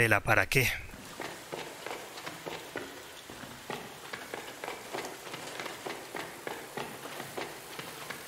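Light footsteps patter quickly.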